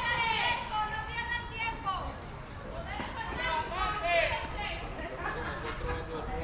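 Young men call out to each other across an open field.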